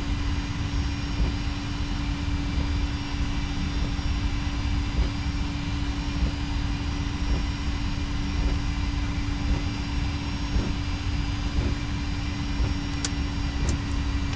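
Tyres rumble on a runway.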